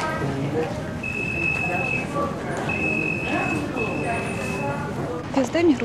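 A metal detector gate beeps in long steady tones.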